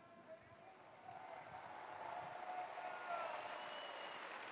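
A large crowd outdoors cheers and calls out, growing louder.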